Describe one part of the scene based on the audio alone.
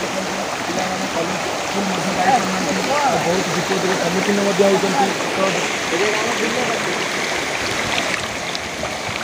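Young people talk with animation close by.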